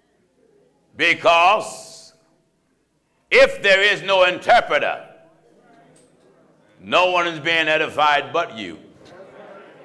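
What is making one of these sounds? A man speaks with emphasis into a microphone in a large, echoing hall.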